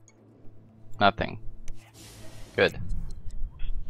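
A young man talks with animation.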